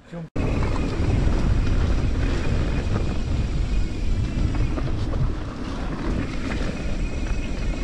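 A vehicle engine rumbles low and steady while driving over a bumpy dirt track.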